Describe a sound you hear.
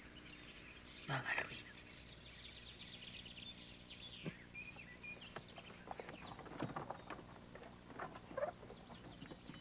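A woman answers softly nearby.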